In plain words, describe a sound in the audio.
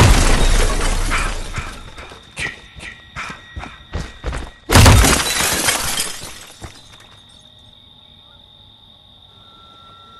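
Heavy footsteps tramp over ground.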